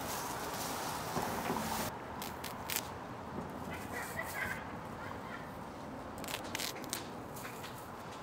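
Dry grass stalks rustle and crackle as a hand brushes through them.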